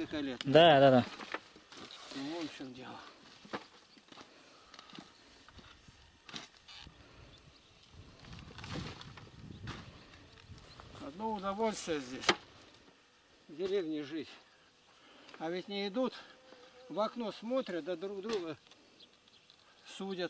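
A shovel scrapes and digs into soil.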